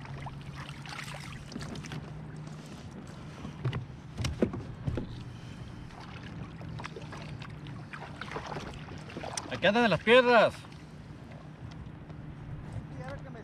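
Small waves lap against a kayak hull.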